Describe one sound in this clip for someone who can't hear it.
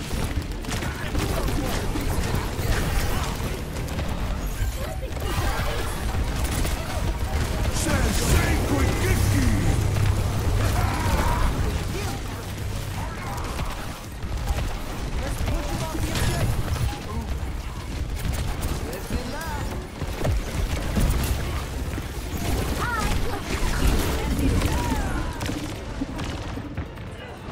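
Rapid energy gunfire shoots in bursts.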